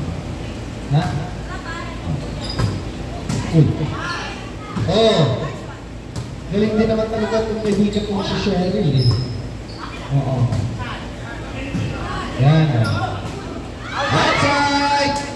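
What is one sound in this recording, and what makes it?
A volleyball thumps off players' arms.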